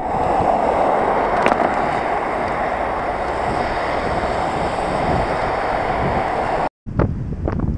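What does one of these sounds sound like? Cars swish past on a wet road.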